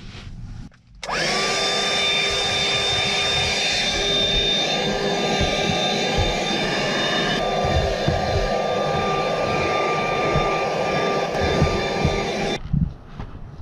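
A cordless handheld vacuum whines as it sucks at carpet.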